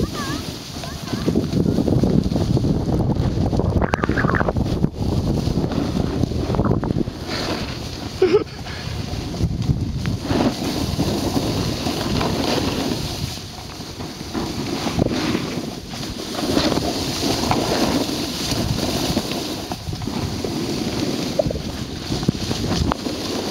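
Snowboards scrape and hiss over packed snow.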